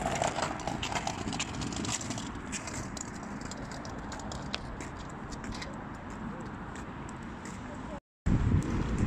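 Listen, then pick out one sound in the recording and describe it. Scooter wheels rumble along a wet path.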